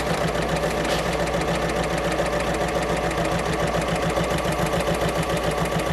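A sewing machine hums and clatters rapidly.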